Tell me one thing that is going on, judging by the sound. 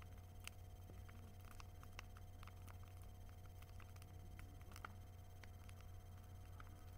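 Flames roar steadily in a bonfire.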